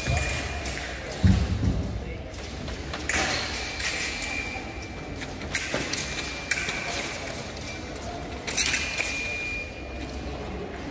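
Fencing shoes stamp and squeak on a hard floor in an echoing hall.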